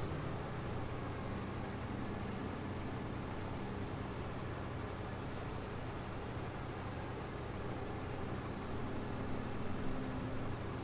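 Tyres crunch on packed snow.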